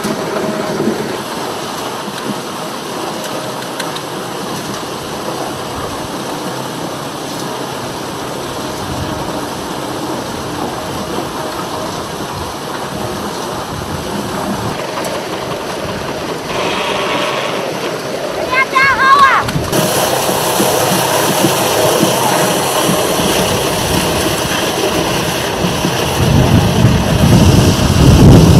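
A machine rumbles and rattles steadily.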